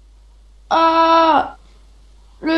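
A creature grunts loudly.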